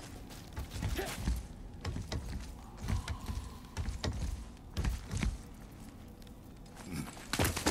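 Hands and feet thump on a creaking wooden ladder.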